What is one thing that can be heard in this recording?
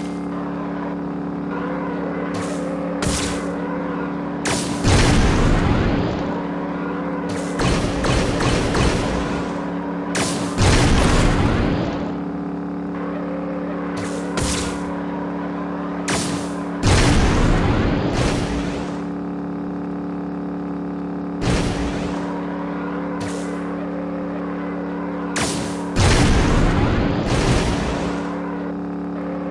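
A kart engine whirs steadily.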